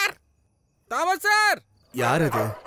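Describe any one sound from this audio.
A woman laughs softly nearby.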